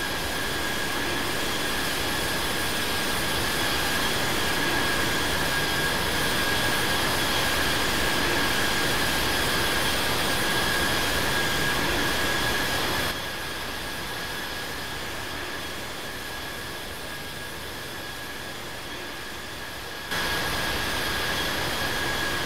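A jet engine roars with a steady high whine.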